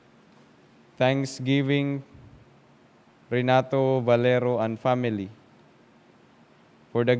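A young man speaks slowly and calmly into a microphone, echoing slightly in a room.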